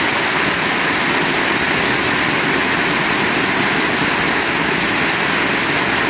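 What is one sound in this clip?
Rainwater streams off a roof edge and splashes.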